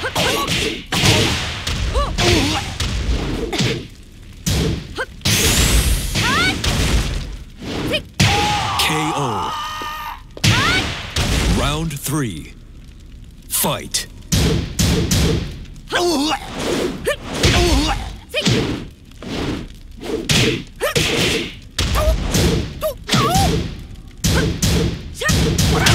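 Punches and kicks land with sharp, heavy thuds, again and again.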